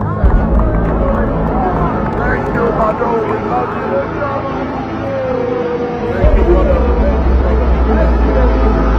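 A crowd of men and women sing and shout along close by.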